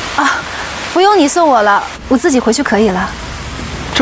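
A young woman speaks calmly and sweetly, close by.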